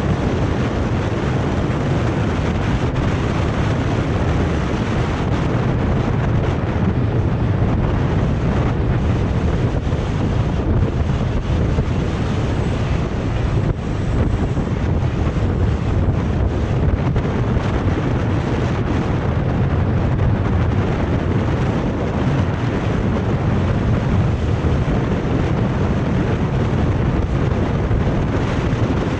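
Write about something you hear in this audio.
Wind rushes loudly and steadily past outdoors.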